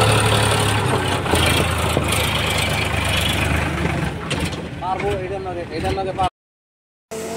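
A tractor engine rumbles loudly close by.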